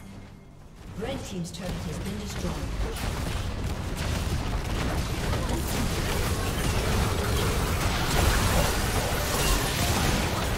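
Game battle effects crackle, whoosh and burst in quick succession.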